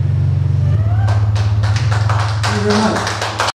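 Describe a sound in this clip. A man beatboxes into a microphone with sharp, quick percussive sounds.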